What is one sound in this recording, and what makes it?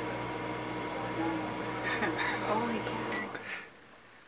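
A microwave oven hums steadily, then stops.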